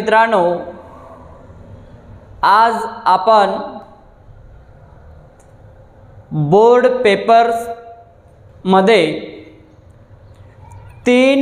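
A young man speaks clearly into a clip-on microphone, explaining at a steady pace.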